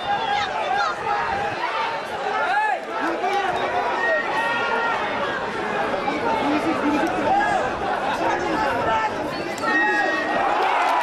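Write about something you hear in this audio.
Men shout and argue close by.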